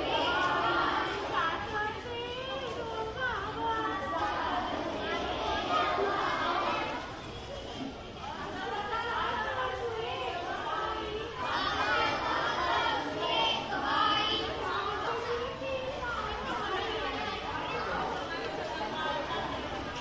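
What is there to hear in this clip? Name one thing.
A large group of women sings together outdoors.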